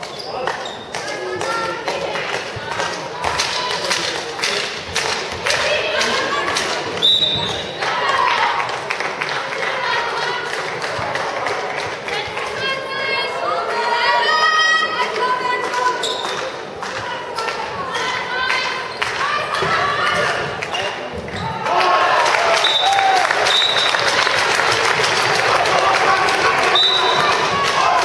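Girls shout and call out to each other in a large echoing hall.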